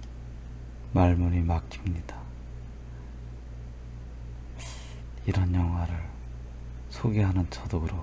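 A man speaks calmly and close into a microphone, in short bursts with pauses.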